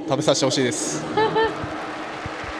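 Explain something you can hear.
A young man speaks cheerfully into a microphone.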